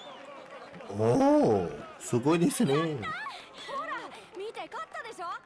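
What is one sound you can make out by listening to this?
A boy shouts with excitement.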